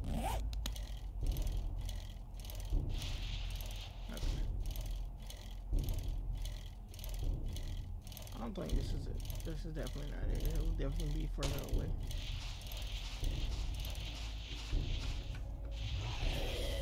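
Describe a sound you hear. A small motorbike engine hums steadily at low speed.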